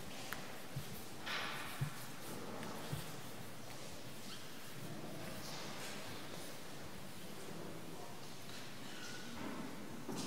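Footsteps shuffle softly on a stone floor in a large echoing hall.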